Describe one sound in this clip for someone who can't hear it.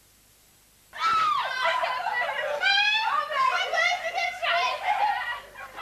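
Young children shout and squeal excitedly close by.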